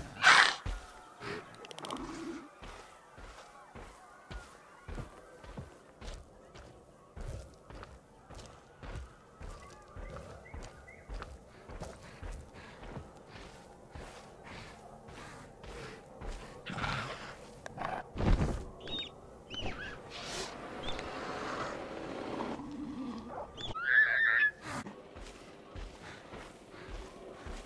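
A small dinosaur's feet patter steadily on grass and ground.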